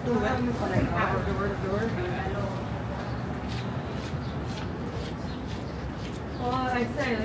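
Footsteps tap on a pavement close by.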